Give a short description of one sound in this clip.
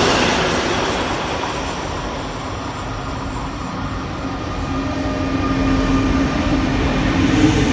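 A passenger train rolls in with a rising electric hum.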